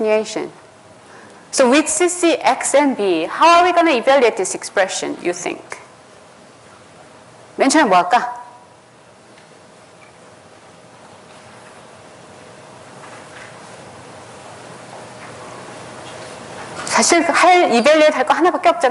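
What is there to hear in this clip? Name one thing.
A young man speaks calmly through a microphone in a large echoing hall.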